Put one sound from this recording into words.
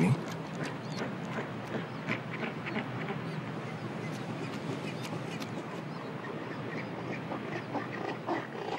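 Penguins squawk and chatter all around.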